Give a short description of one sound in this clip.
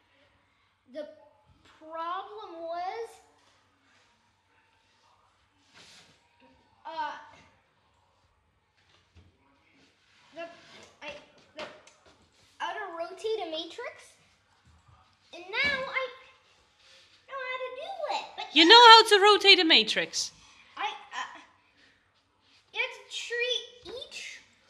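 A young boy talks close by, with animated bursts and pauses.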